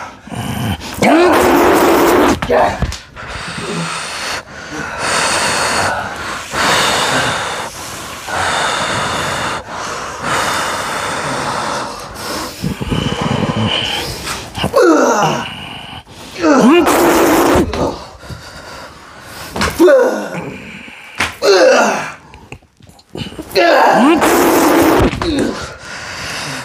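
A man screams and shrieks wildly nearby.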